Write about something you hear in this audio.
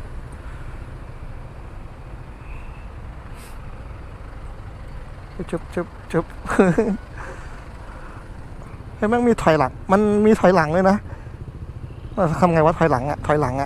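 A motorcycle engine rumbles low and steady nearby.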